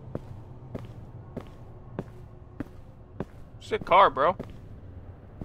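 Footsteps walk slowly and evenly on hard ground.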